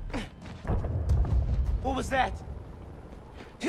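A young man speaks in surprise, close by.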